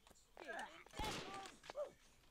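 A rifle fires a single shot.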